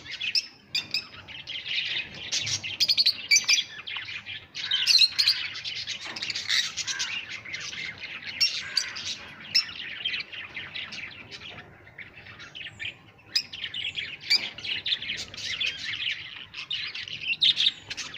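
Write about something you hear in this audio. Many small parrots chirp and chatter loudly and shrilly, close by.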